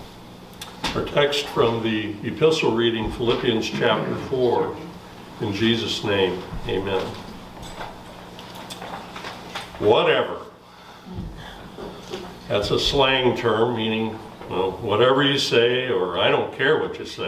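An older man speaks calmly and clearly.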